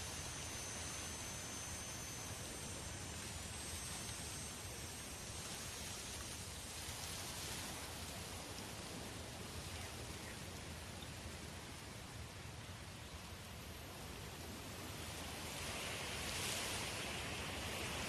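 Wind blows steadily across open grassland, rising in gusts.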